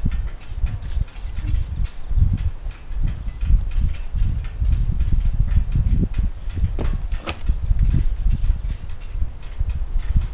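Metal tools click and tap against a motorcycle.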